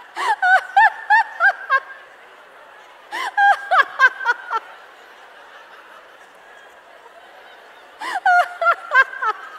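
A large audience laughs.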